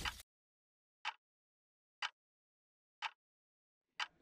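A clock ticks once each second.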